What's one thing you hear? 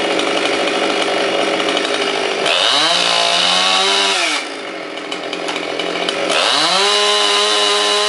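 A chainsaw engine idles, then revs up to a loud high whine and drops back again.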